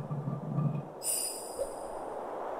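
A bright magical chime rings out.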